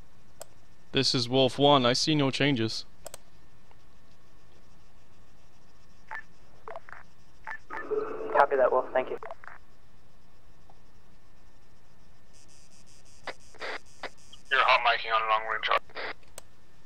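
A man speaks into a close microphone in short, calm bursts.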